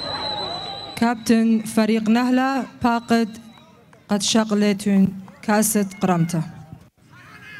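A man speaks loudly through a loudspeaker.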